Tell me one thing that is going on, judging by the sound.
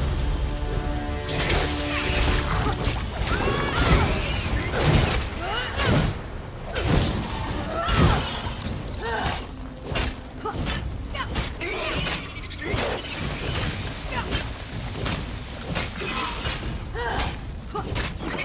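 A giant spider hisses and screeches.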